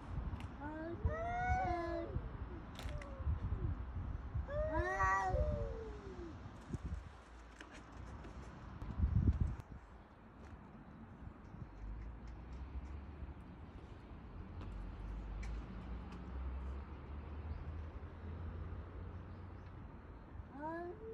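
A cat yowls loudly at another cat nearby.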